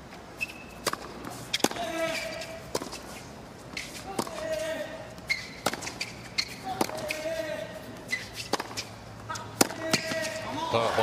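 Tennis balls are struck sharply back and forth with a racket.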